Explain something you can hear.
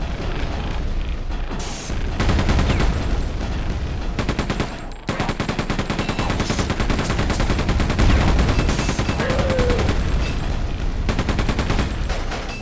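A rapid-fire gun fires in fast, steady bursts.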